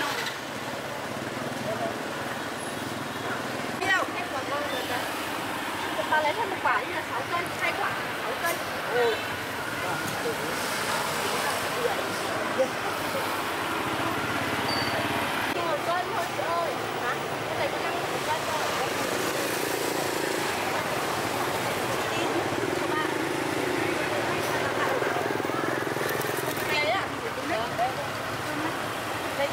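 Women chat with animation close by, outdoors.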